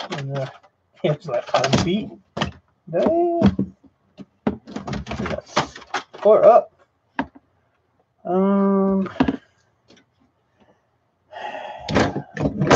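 Hard plastic parts clatter and knock as a laptop is handled.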